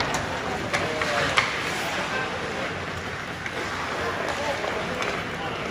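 Noise fills a large echoing ice rink.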